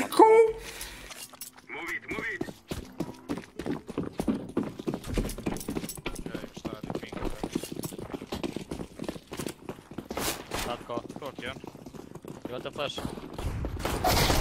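Footsteps patter quickly and steadily on hard ground.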